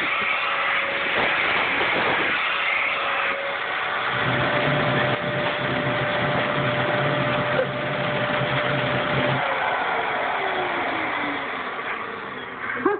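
A vacuum cleaner whirs steadily close by.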